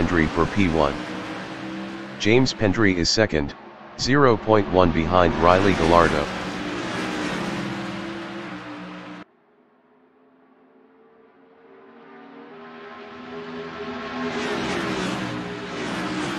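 Race car engines roar loudly and rev up and down as the cars speed past.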